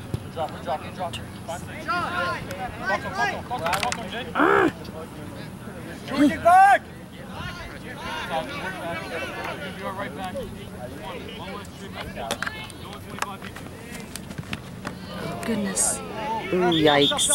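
Young men and spectators shout and call out across an open field.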